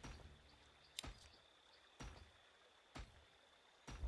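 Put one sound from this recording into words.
Short electronic clicks sound a few times.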